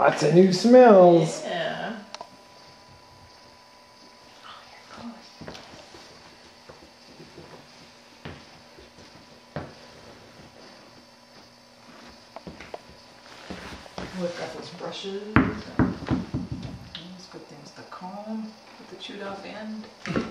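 A puppy's paws patter and click on a hard floor.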